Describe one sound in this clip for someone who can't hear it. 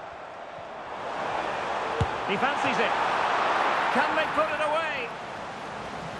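A stadium crowd cheers in a swelling roar.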